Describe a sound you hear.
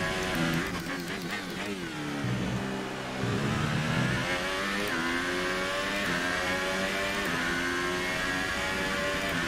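A racing car engine whines loudly, dropping in pitch as it slows and rising again as it speeds up.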